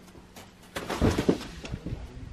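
A climber drops onto a crash pad with a soft thump.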